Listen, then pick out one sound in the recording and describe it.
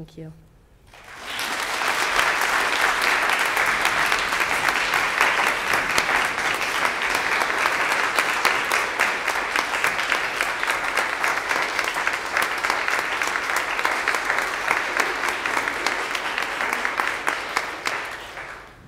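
A crowd claps loudly and steadily in an echoing hall.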